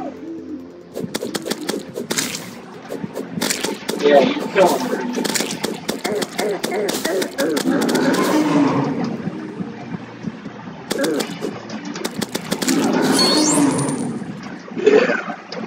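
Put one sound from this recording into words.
A sword swings and strikes a monster again and again with sharp game hits.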